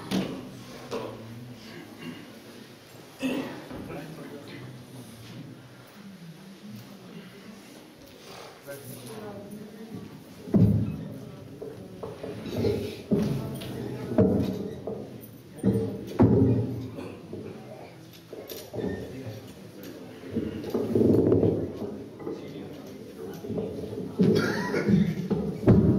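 A man speaks through a microphone and loudspeakers in a room with some echo.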